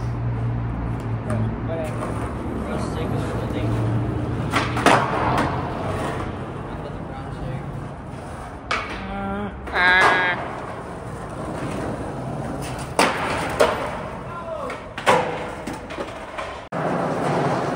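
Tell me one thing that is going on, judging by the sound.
Skateboard wheels roll and rumble over concrete.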